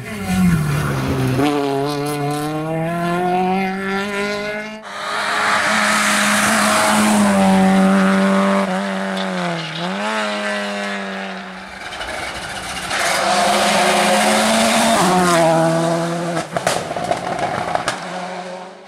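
A rally car engine revs hard, rising and dropping in pitch as it shifts gears.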